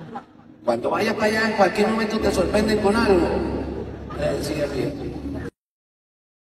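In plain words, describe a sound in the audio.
An older man sings into a microphone, heard through loudspeakers in a large hall.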